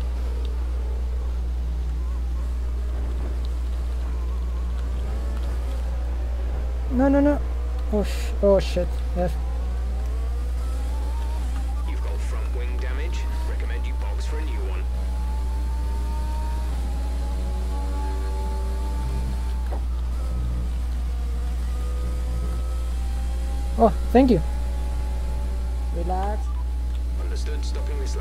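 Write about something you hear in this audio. A racing car engine revs and whines.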